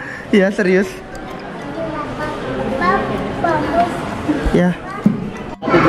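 Young women chat and laugh close by.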